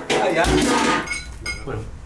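A fork scrapes food in a frying pan.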